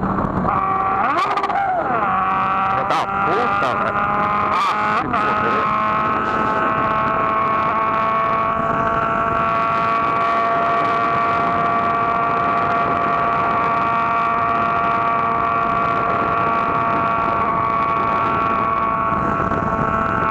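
A motorcycle engine hums steadily, its pitch shifting through gear changes early on.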